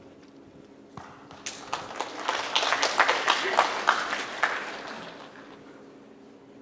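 An audience applauds in a large hall.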